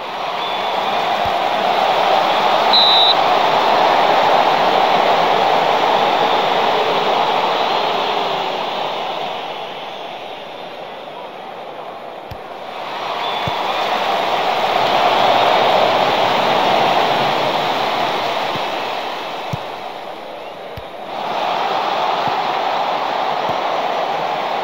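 A large stadium crowd roars, swelling and easing off in waves.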